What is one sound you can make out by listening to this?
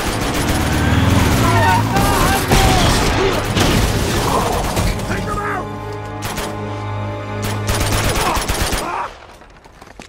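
Gunshots crack in a rapid exchange of fire.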